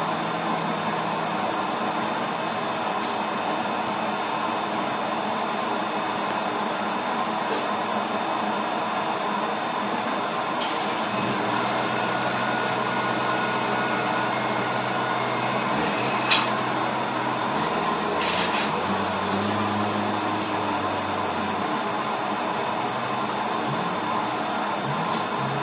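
Cardboard rustles and scrapes against metal.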